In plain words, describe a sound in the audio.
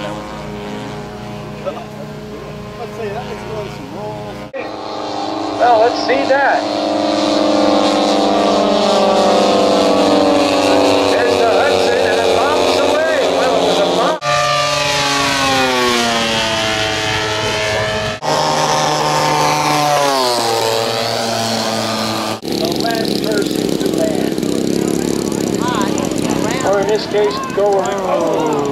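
A propeller plane engine drones overhead, rising and falling in pitch as it passes.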